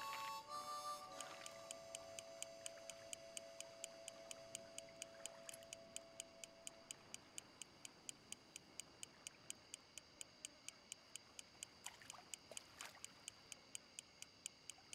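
A fishing reel ticks rapidly and steadily as a line is wound in.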